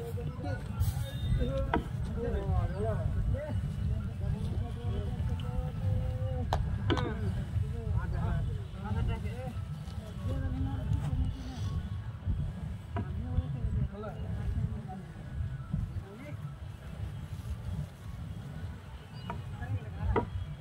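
A wooden pole thuds and scrapes against the ground.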